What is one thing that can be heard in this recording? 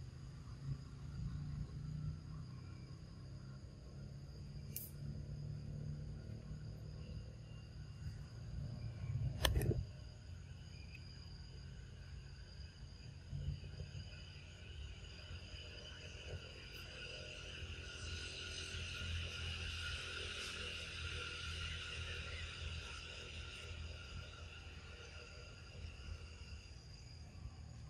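Small monkeys patter and scamper over stones and dry leaves.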